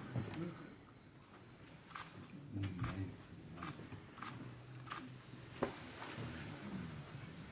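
Several men murmur and talk quietly nearby.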